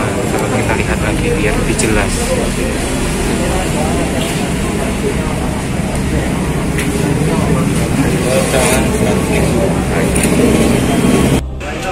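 Paper banknotes rustle as they are counted by hand.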